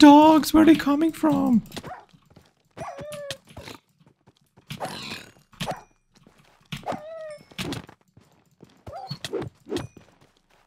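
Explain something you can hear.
Sword blows hit a creature with short thuds.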